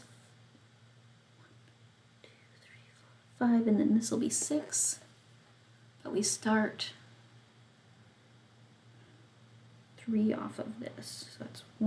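A needle and thread pull softly through stiff fabric.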